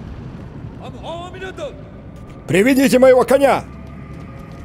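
A man speaks briefly and loudly through a microphone.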